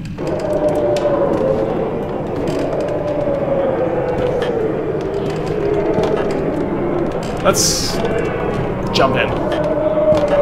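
Footsteps creak on wooden floorboards.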